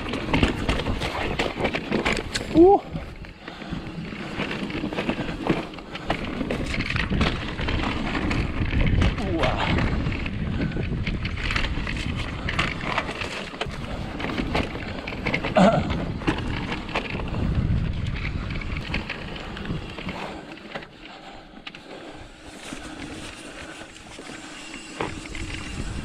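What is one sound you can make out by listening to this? A bicycle rattles and clatters over bumps.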